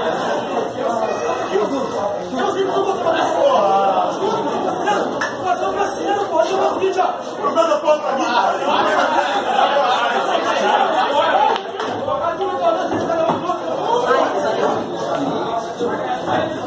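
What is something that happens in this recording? Many men talk loudly and with animation all around.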